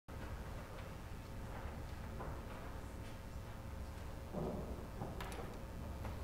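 Quiet footsteps and shuffling sound in a large, softly echoing hall.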